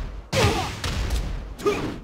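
Water splashes as a body falls into it.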